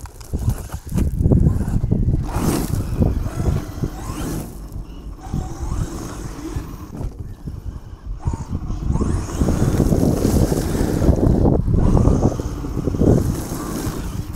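Small tyres crunch and rattle over loose gravel.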